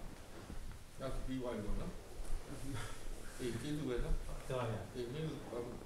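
An elderly man speaks calmly and slowly nearby.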